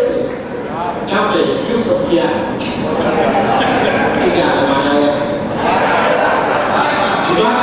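A woman speaks with animation through a microphone over loudspeakers.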